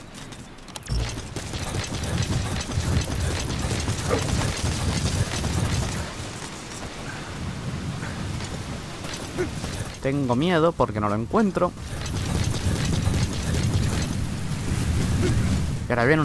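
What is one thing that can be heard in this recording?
Footsteps thud quickly on grass and dirt.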